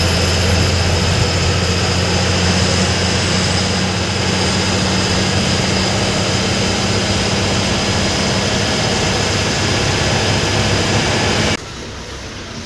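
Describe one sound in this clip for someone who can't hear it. A bus engine drones loudly while driving on a highway.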